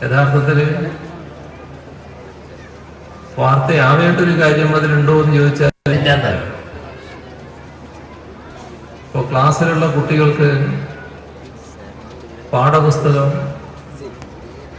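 An elderly man gives a speech into a microphone, speaking in bursts with pauses, his voice carried over loudspeakers.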